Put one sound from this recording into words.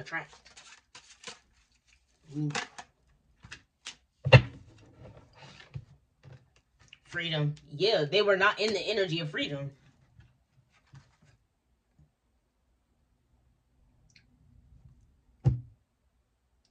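Playing cards shuffle and slap down onto a wooden table.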